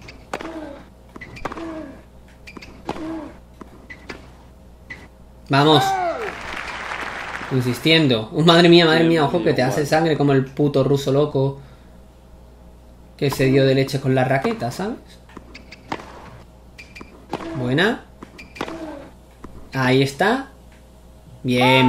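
A tennis ball is struck with a racket again and again.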